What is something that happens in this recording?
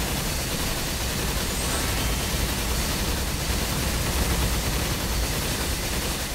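Magic blasts and crackling effects from a video game play loudly.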